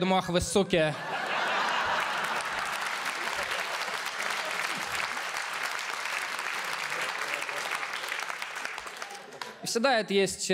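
An audience laughs and applauds loudly.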